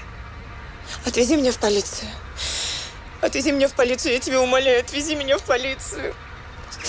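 A young woman speaks emotionally and close by.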